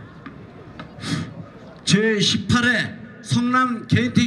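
An elderly man speaks loudly into a microphone over a loudspeaker.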